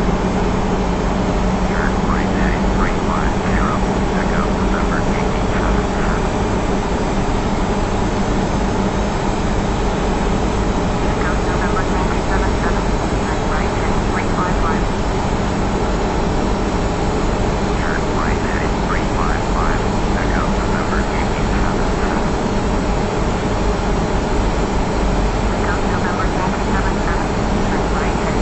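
A jet airliner's engines drone steadily.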